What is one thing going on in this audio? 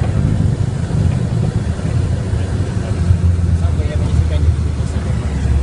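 A small plane's engine drones loudly from inside the cockpit.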